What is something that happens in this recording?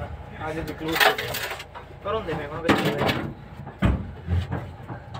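Several men talk close by, with animation.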